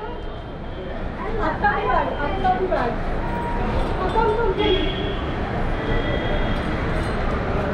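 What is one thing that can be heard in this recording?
A crowd of men and women murmur and talk nearby.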